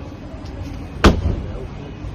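A car's boot lid slams shut.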